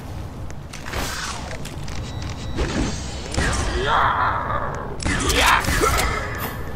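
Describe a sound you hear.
A ray gun fires with sharp zapping bursts.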